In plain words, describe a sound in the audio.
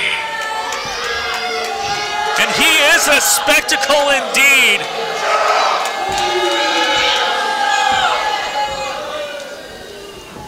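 A burly man shouts angrily.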